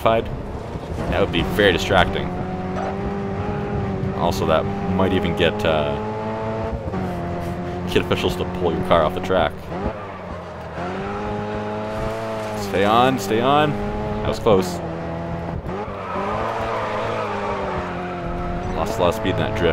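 A small car engine revs high and shifts gears throughout.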